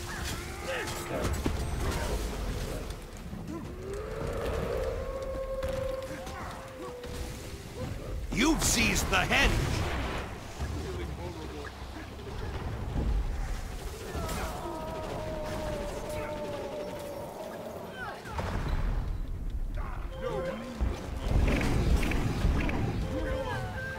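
Magic blasts and weapon strikes crackle and clash in a busy fight.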